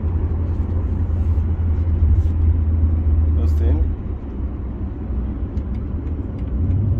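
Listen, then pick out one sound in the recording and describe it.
A low, steady road rumble fills the inside of a moving car.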